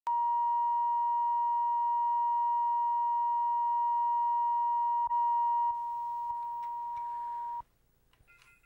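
A steady, high, shrill test tone sounds without a break.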